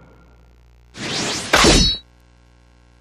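A sharp whooshing game sound effect sweeps past.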